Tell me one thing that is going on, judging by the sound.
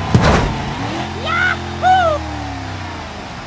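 Metal creaks and squeals as a truck tumbles.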